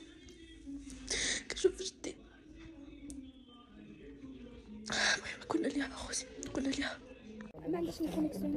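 A young woman speaks close up, emotionally and with a sobbing voice.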